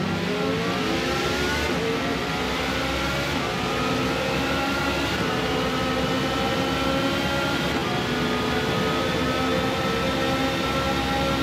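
A racing car engine roars and rises in pitch as the car speeds up through the gears.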